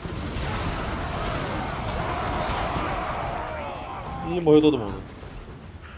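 Magical battle effects roar and hiss loudly, then fade.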